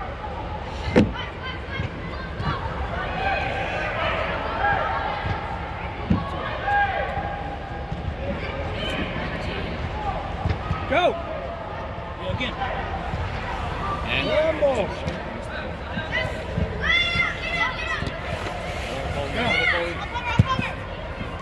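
A soccer ball is kicked with a dull thump.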